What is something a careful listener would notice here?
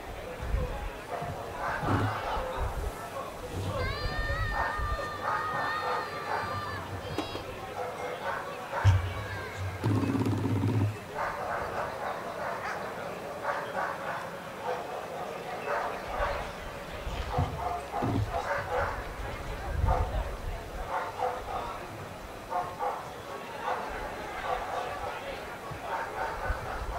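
Men and women in a small crowd talk and chat nearby outdoors.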